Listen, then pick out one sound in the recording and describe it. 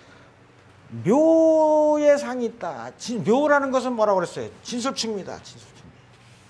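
An elderly man speaks loudly and with animation through a microphone.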